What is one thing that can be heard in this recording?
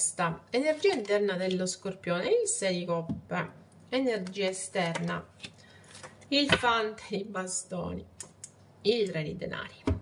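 Playing cards shuffle and flick between hands.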